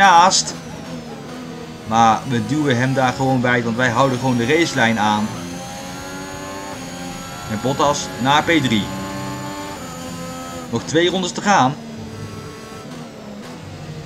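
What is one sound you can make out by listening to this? A racing car engine whines at high revs, rising and dropping as gears change.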